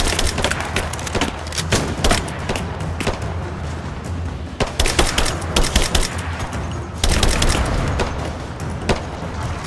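A rifle fires in rapid bursts of sharp shots.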